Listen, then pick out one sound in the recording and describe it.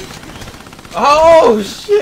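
A young man exclaims loudly close to a microphone.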